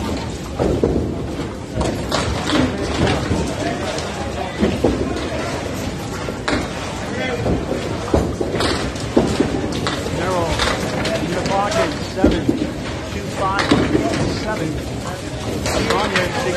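Bowling balls rumble down wooden lanes.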